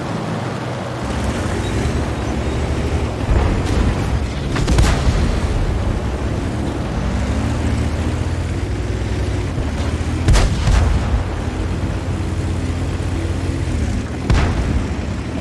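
A tank engine rumbles and roars steadily.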